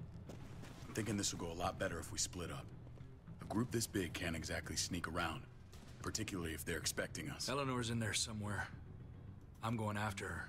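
A man speaks quietly and earnestly, close by.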